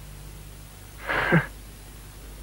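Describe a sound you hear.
A young man speaks briefly and lightly.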